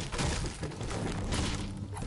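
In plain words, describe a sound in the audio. A pickaxe strikes a brick wall with sharp knocks.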